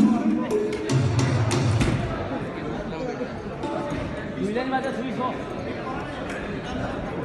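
A keyboard plays music through loudspeakers.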